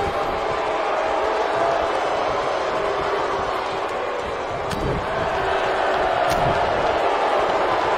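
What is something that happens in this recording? A large crowd cheers and roars steadily in an echoing arena.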